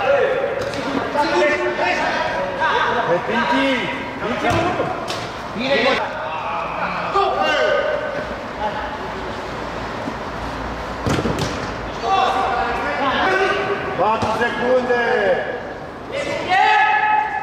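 Shoes squeak on an indoor court.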